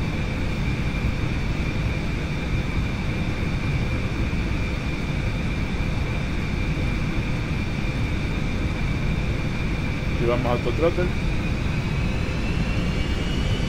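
An aircraft engine drones steadily with a high whine.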